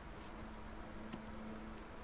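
Paper rustles as a hand picks up a booklet.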